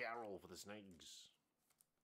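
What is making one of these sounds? A card slides into a plastic sleeve with a soft rustle.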